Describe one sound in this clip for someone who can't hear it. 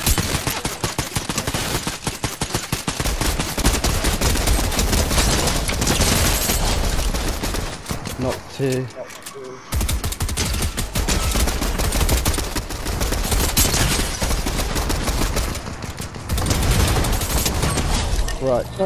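Guns fire in rapid bursts of loud shots.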